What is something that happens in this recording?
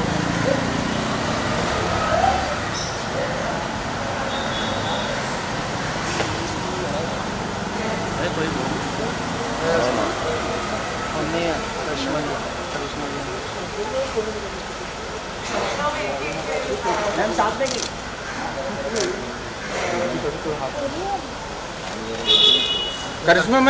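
Several men talk and call out nearby.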